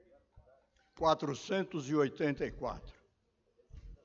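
An elderly man speaks calmly into a microphone, heard through loudspeakers.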